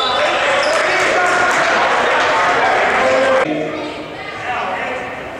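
A crowd cheers and chatters loudly in a large echoing hall.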